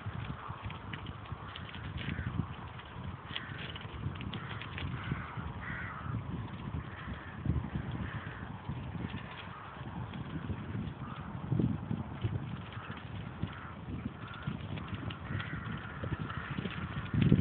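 A car drives along a road with a low, steady rumble.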